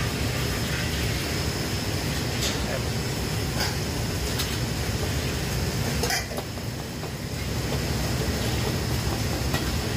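A ladle scrapes and stirs rice in a wok.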